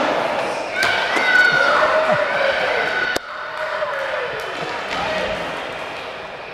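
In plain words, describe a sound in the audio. Skateboard wheels roll and grind on concrete in a large echoing hall.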